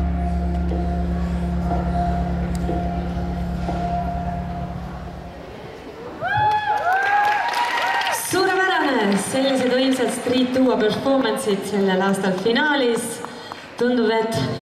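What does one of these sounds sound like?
Music plays loudly through loudspeakers in a large echoing hall.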